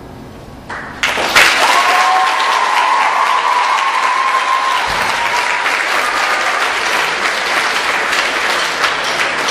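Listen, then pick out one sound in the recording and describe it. An audience applauds loudly in a large echoing hall.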